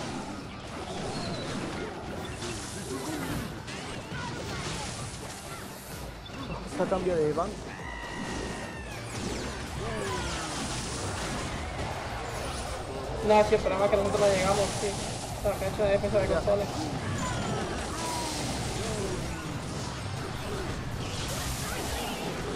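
Video game battle sounds and effects play.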